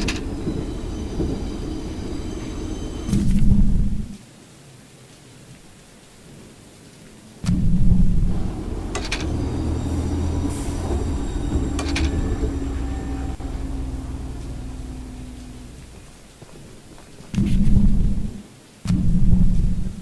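A heavy engine rumbles steadily.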